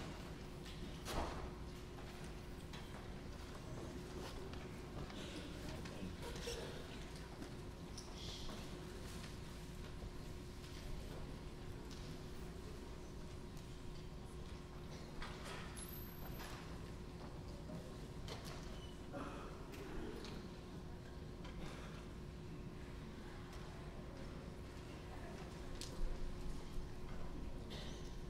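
People murmur quietly in a large echoing hall.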